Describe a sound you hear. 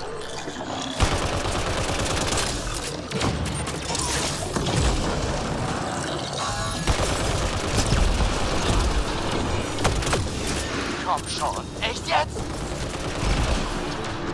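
Energy weapons fire in quick bursts.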